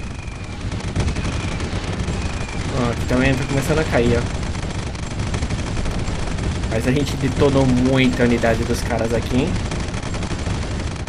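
Explosions boom and rumble in a game battle.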